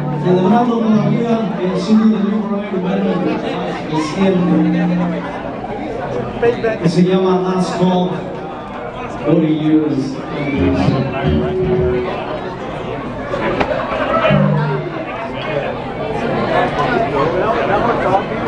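A man sings loudly into a microphone over loudspeakers.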